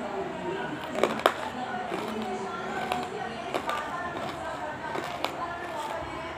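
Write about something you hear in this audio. A plastic lid clicks and knocks as it is handled.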